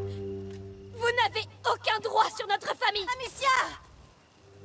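A young woman shouts angrily.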